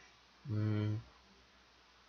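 A young man hums briefly close to a microphone.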